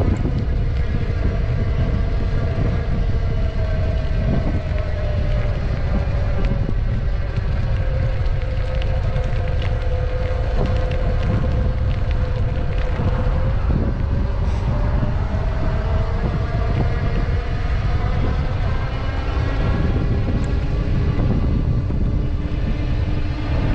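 Wind rumbles and buffets loudly outdoors.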